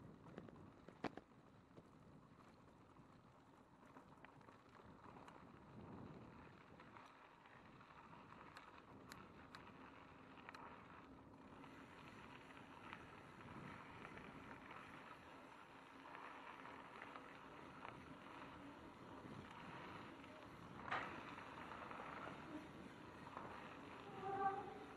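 A bicycle rattles and clatters over bumps on the trail.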